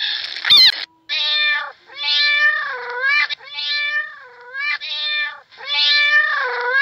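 A cat meows repeatedly in long, drawn-out calls.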